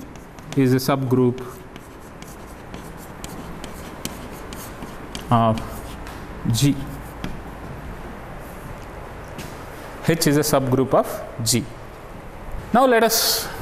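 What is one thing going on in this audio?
A middle-aged man speaks calmly in short phrases through a close microphone.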